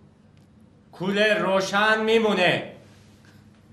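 An elderly man speaks nearby.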